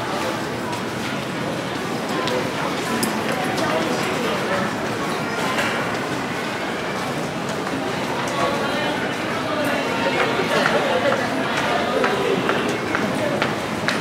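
Footsteps shuffle and tap on a hard floor.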